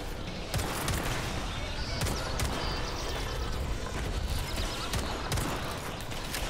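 Pistol shots ring out in quick bursts.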